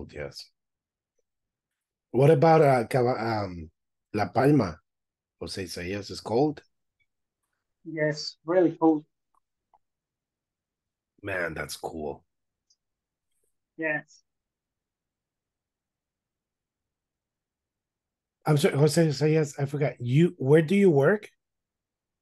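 A young man speaks calmly over an online call, with short pauses.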